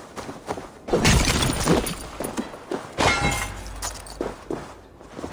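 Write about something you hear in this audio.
Armour and belongings rattle and rustle as a body is searched.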